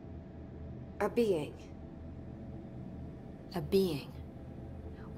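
A woman speaks calmly and quietly.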